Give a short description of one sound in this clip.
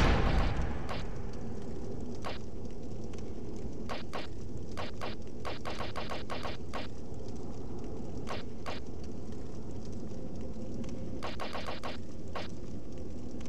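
Soft menu clicks tick as a cursor moves through a game inventory.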